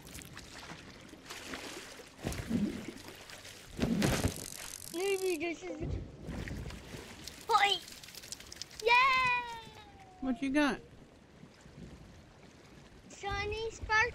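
Waves slosh and splash against a wooden boat.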